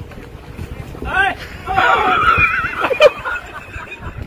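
Women shout and laugh outdoors.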